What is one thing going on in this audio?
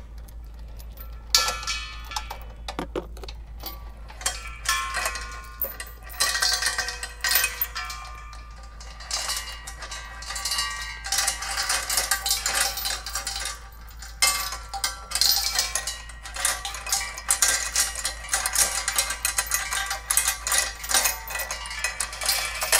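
Metal fittings clink and scrape on a gas tank.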